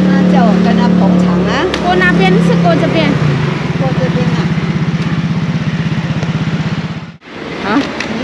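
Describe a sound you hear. Scooter engines hum and rumble close by.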